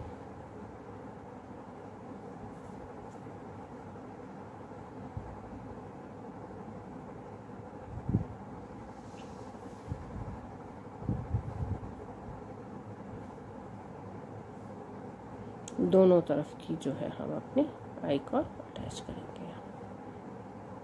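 Yarn rustles softly as it is pulled through knitted fabric.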